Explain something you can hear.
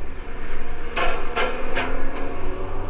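A bicycle rattles sharply over bumps in the paving.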